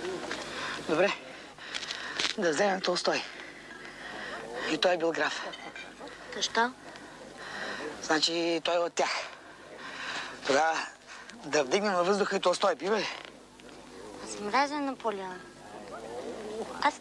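A woman speaks quietly and earnestly up close.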